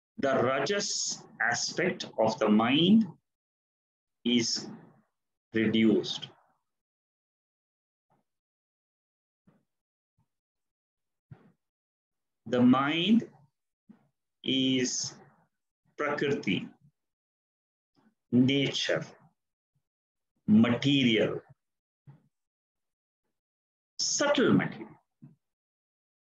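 An elderly man speaks calmly and slowly over an online call, with long pauses.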